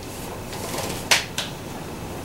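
A folding fan snaps shut.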